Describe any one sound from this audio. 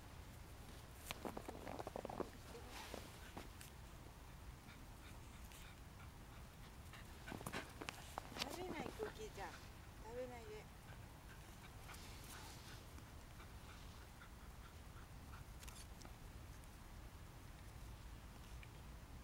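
A dog digs and scrapes in crunchy snow.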